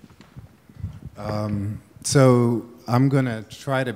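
A man speaks calmly into a microphone, close by and loud.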